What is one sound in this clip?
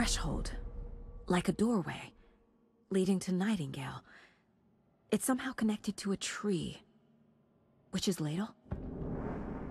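A young woman speaks quietly and thoughtfully, close by.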